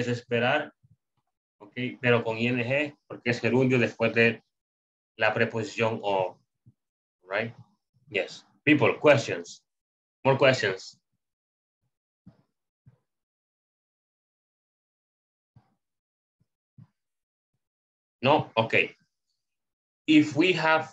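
A man speaks calmly through an online call, explaining slowly with pauses.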